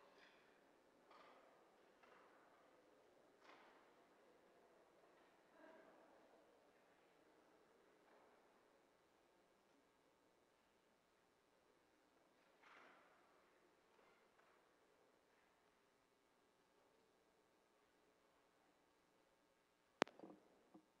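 An audience murmurs quietly in a large echoing hall.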